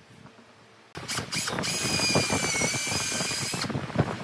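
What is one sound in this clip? A cordless drill whines as it bores into a wooden post.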